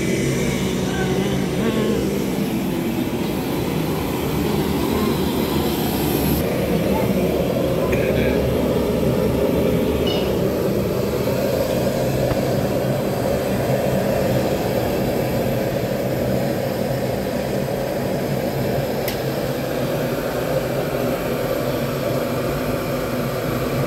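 A gas burner roars steadily.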